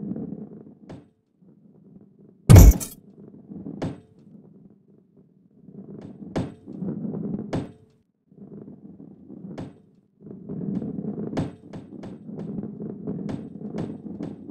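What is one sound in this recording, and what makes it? A ball knocks against walls with sharp clicks.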